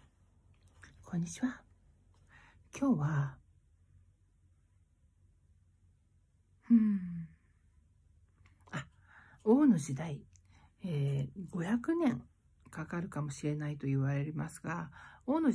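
A middle-aged woman talks close by in bursts, with pauses between phrases.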